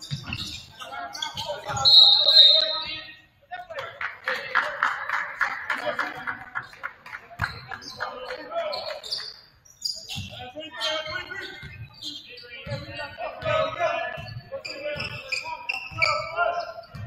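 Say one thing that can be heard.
A basketball bounces on a hard wooden court.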